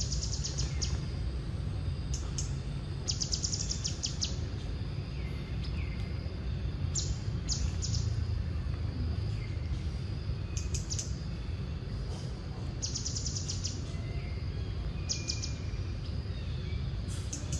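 A monkey chews food with soft smacking sounds.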